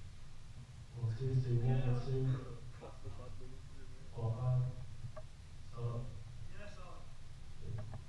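A young man speaks into a microphone over loudspeakers in an echoing hall.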